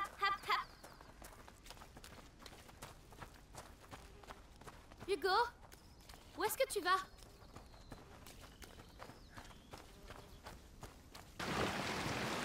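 Footsteps crunch on stones and gravel.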